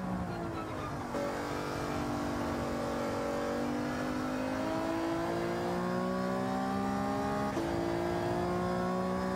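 A racing car engine revs high, dropping as it shifts gears and then climbing again.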